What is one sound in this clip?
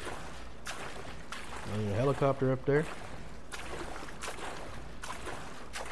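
Small waves wash gently onto a sandy shore.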